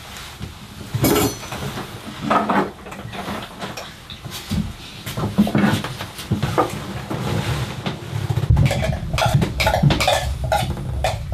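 Crockery clinks on a table.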